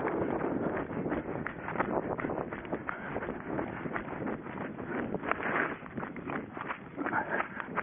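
Footsteps run quickly through dry grass and leaves.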